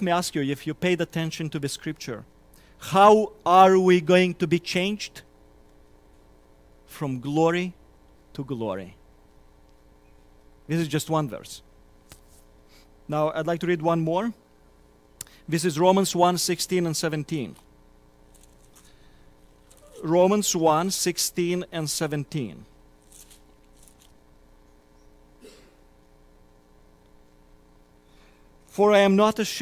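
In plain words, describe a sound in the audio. A man speaks into a microphone in measured phrases with long pauses.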